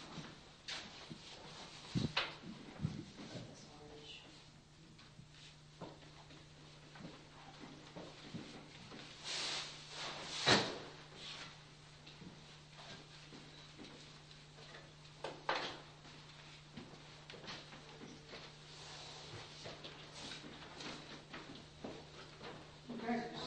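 Hand tools scrape and brush against a wall.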